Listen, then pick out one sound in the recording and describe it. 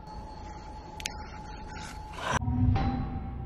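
A menu clicks.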